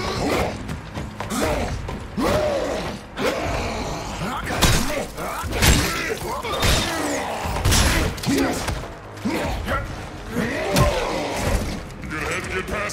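Heavy blows thud in a close fight.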